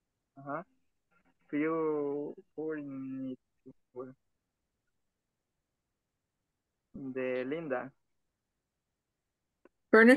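A young man speaks casually over an online call, in short bursts.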